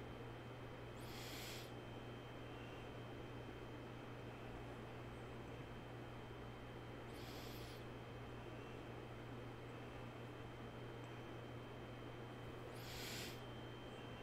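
A man breathes slowly and deeply close to a microphone.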